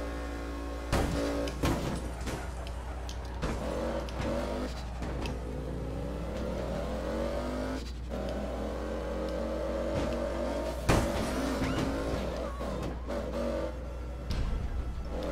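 A car crashes with loud thuds.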